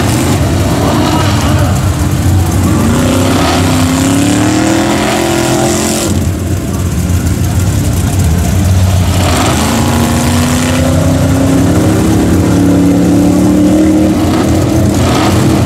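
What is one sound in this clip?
A truck engine roars and revs hard.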